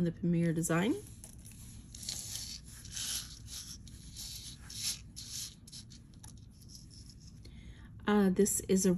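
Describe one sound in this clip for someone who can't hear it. Metal chains and jewellery clink softly as they are handled.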